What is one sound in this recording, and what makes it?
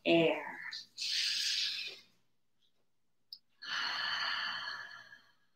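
A middle-aged woman breathes in and out deeply and slowly.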